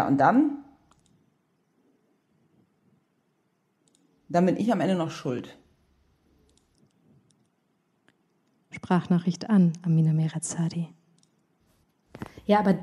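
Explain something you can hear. A woman reads aloud calmly into a microphone, with pauses between phrases.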